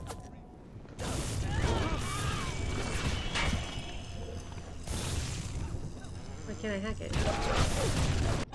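Electricity crackles and zaps in sharp bursts.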